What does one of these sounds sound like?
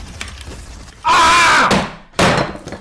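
A middle-aged man shouts excitedly.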